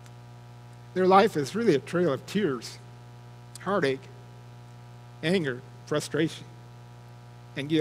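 An adult man speaks calmly into a microphone, heard through a loudspeaker.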